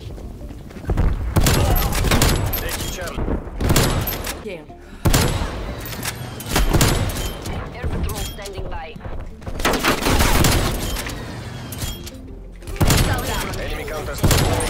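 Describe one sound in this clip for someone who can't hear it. A sniper rifle fires loud, sharp shots.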